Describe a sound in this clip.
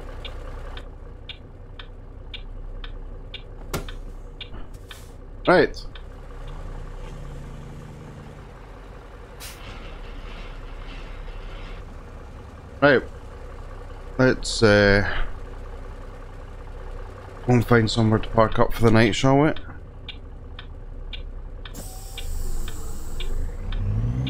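A truck engine idles with a low, steady rumble.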